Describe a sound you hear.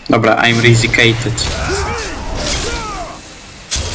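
A blade stabs into a body with a wet thud.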